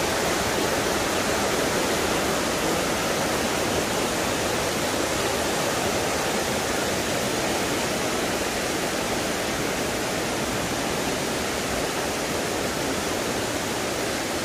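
A mountain stream rushes steadily over rocks, close by.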